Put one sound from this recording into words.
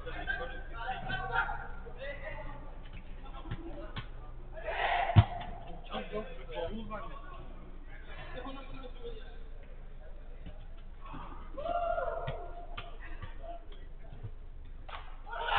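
Men shout and call out to each other at a distance.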